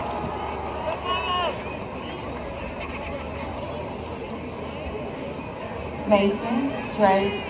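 Young people in a crowd cheer and whoop loudly.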